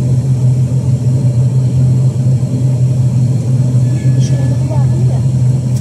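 An aircraft propeller engine drones loudly and steadily close by, heard from inside the cabin.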